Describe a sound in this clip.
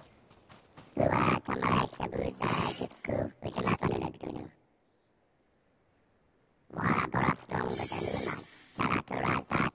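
A man speaks through a mask in a muffled, filtered voice.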